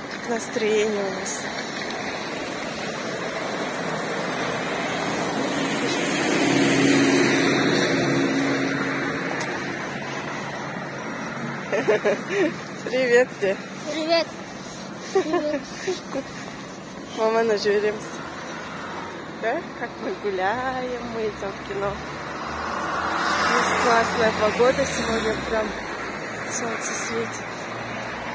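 A young woman speaks calmly close to the microphone.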